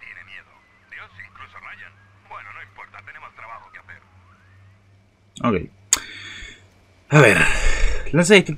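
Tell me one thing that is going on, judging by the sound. A young man talks with animation close to a microphone, at times loudly.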